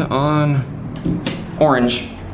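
A finger clicks an elevator button.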